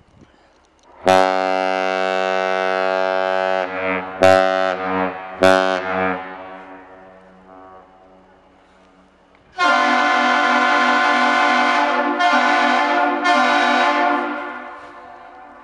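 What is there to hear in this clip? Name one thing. A ship's horn sounds loud, deep blasts that echo.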